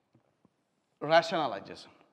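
A man speaks loudly and clearly close by.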